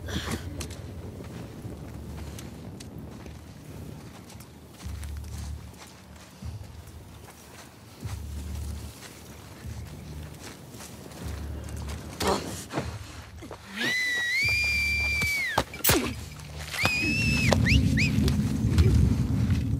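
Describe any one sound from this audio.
Footsteps rustle softly through dense leafy plants.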